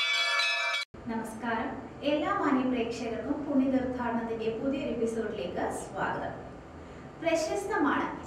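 A young woman speaks clearly and warmly into a microphone.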